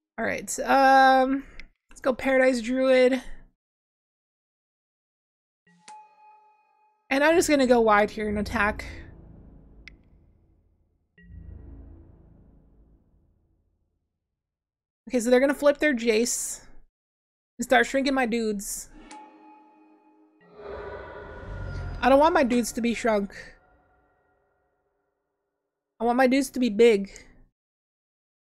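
A young woman talks calmly into a close microphone, in short bursts with pauses.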